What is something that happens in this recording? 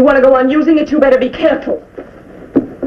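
A young woman speaks sharply and with emotion.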